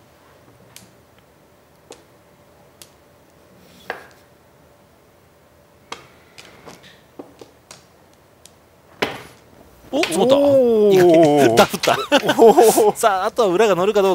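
Mahjong tiles click sharply against one another and the table.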